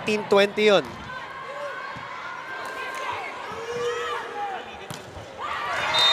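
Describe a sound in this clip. A volleyball is struck hard with a sharp smack.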